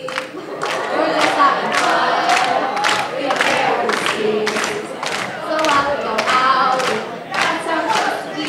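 A young woman sings through a microphone in a large hall.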